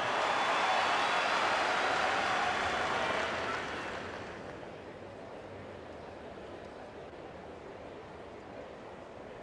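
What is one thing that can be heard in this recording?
A large crowd cheers and applauds, then fades down.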